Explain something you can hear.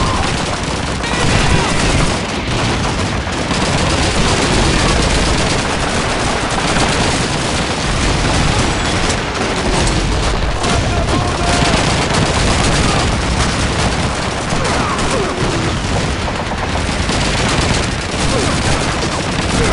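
Gunfire crackles and rattles in bursts.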